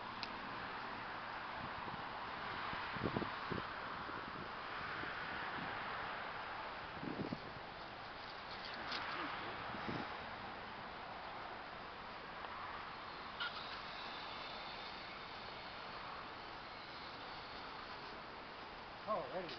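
Footsteps swish through grass outdoors.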